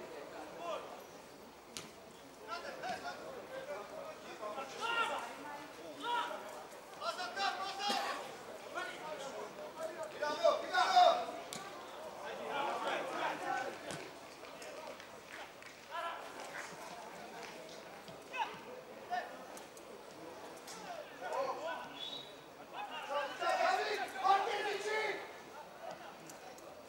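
Young men shout to each other from across an open outdoor field.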